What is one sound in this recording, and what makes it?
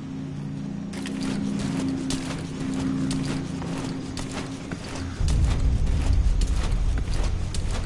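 A soldier drops and crawls across a gritty floor with scuffing sounds.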